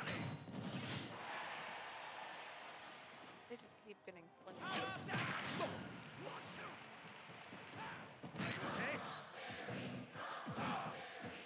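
Punches and blasts from a fighting video game hit in quick bursts.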